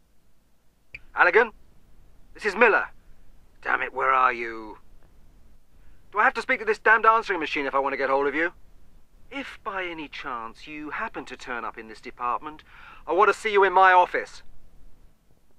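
A man speaks irritably through an answering machine's small loudspeaker.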